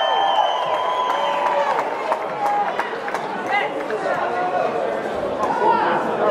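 A drummer strikes drums and cymbals in a large hall.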